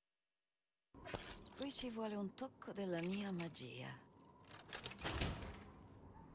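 A metal lock pick scrapes and clicks inside a lock.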